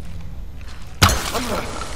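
An arrow is loosed from a bow with a sharp twang.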